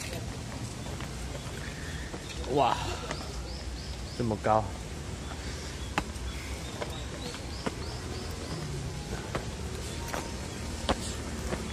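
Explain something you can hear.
Footsteps climb stone steps outdoors.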